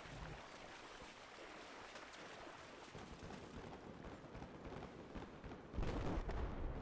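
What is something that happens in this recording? Footsteps crunch through leafy undergrowth, with plants rustling.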